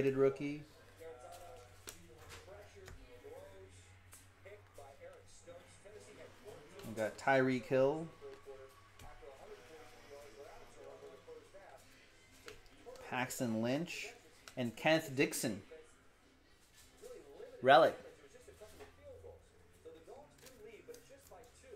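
Trading cards riffle and flick softly as they are shuffled.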